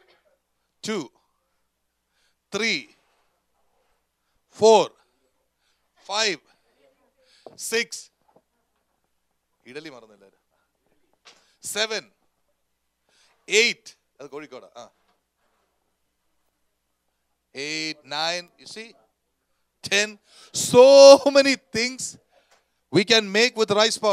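A man preaches with animation into a microphone, in short emphatic phrases with pauses.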